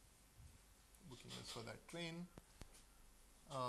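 A man speaks calmly, as if lecturing in a room.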